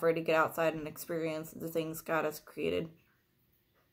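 A young woman reads aloud close by, in a calm, flat voice.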